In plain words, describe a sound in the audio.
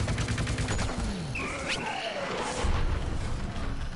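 A loud burst explodes with a crackling pop.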